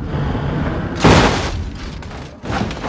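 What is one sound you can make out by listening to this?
A car crashes hard with a loud thud.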